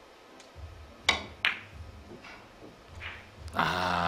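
Billiard balls knock against each other.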